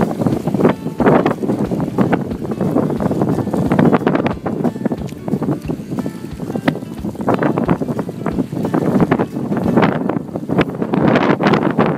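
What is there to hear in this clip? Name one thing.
A dog splashes as it swims through water close by.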